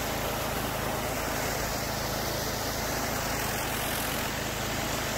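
A pressure washer sprays water hard onto concrete with a steady hiss.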